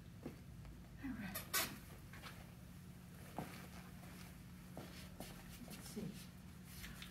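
A woman speaks softly and briefly nearby.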